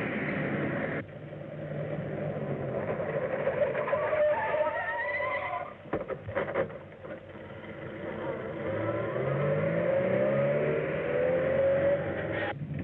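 An old car engine roars as the car speeds along.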